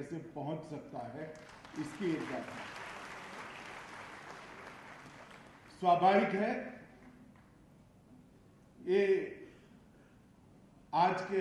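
A middle-aged man speaks with emphasis into a microphone, heard through loudspeakers, pausing between phrases.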